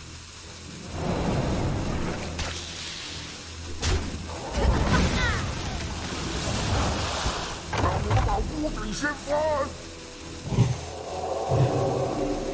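Magical spell effects whoosh and chime in bursts.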